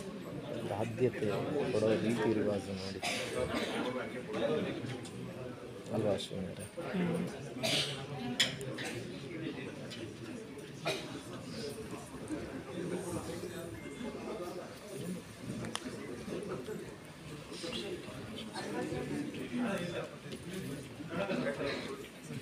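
A crowd murmurs and chatters in a large room.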